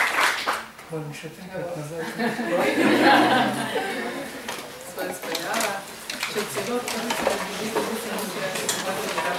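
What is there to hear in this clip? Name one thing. Adults talk and laugh among themselves nearby.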